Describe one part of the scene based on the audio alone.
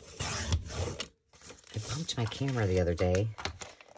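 A paper trimmer blade slides through paper.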